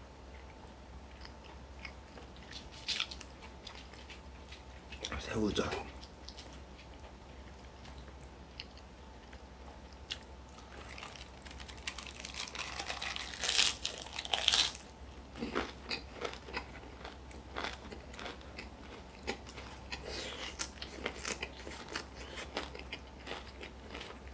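A man and a woman chew and slurp food close up.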